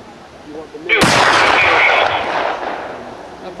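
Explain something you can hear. A rifle fires a single loud shot outdoors, echoing briefly.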